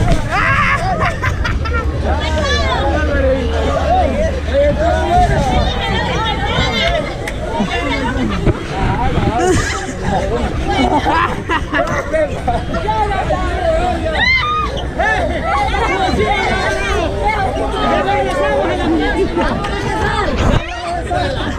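Young women talk excitedly close by.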